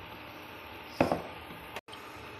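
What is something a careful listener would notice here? A ceramic lid clinks against a pot.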